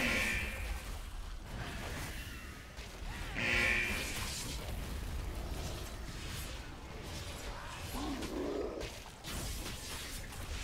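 Weapons clash and spells burst in a game battle.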